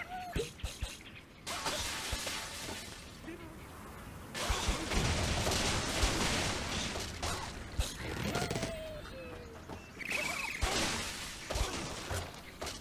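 Blocks of wood and stone crash and tumble down in a game.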